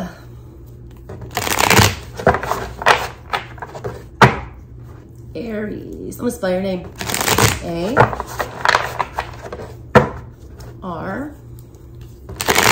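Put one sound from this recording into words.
Playing cards riffle and flutter as they are shuffled.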